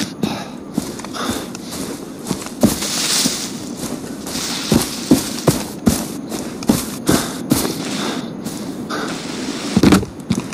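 Footsteps thud steadily on a grassy slope.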